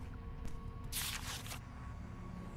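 A card rustles as it is picked up.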